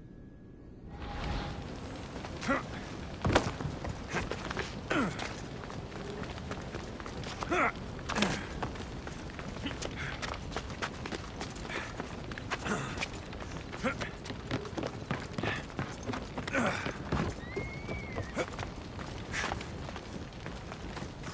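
Footsteps scuff and thud on rock.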